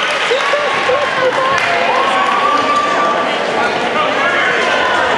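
A small crowd murmurs in a large echoing gym.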